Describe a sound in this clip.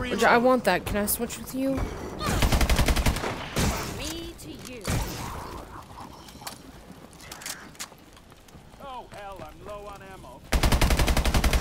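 Rapid gunfire bursts out in loud, quick volleys.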